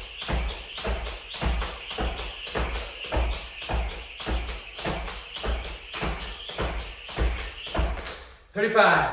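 Feet land softly with each jump.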